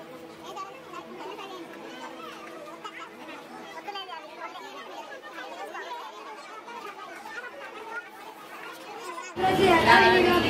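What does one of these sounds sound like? Women talk quietly nearby.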